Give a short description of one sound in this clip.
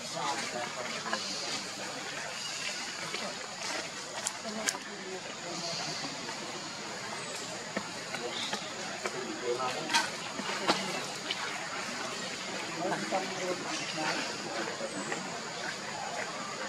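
Monkeys chew and squelch on a banana.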